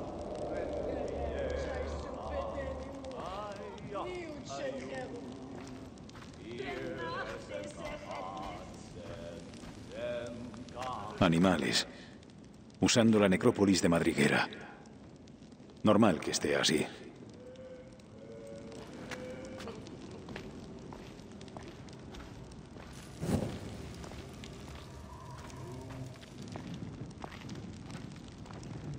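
A torch flame crackles and flickers.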